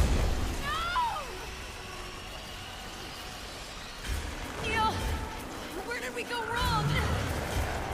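A woman groans in pain.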